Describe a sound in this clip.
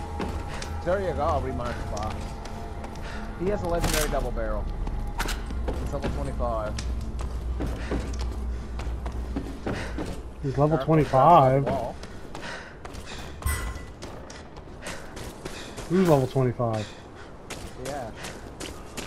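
Footsteps thud on hard ground and wooden boards.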